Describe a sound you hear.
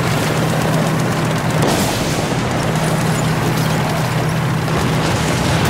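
Tank tracks clatter and squeak over rough ground.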